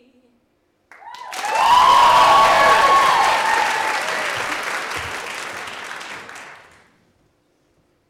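An audience claps and cheers loudly, then the applause fades.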